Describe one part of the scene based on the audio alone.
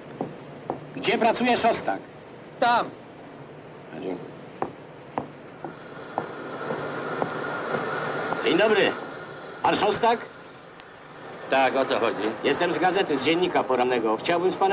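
A middle-aged man speaks with animation at close range.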